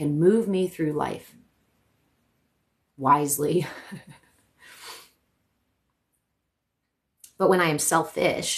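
A young woman speaks calmly and closely, with pauses.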